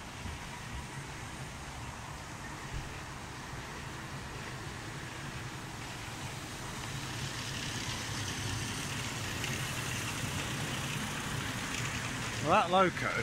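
A small train engine hums as it rolls past on its track.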